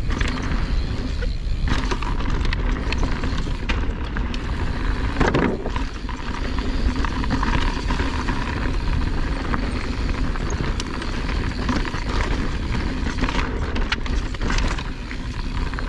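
Bicycle tyres crunch and rattle over a rocky dirt trail.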